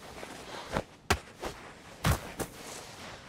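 A wooden stick strikes with dull thuds.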